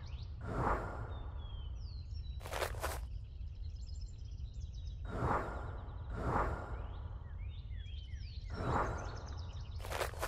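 A magical chime sparkles and shimmers.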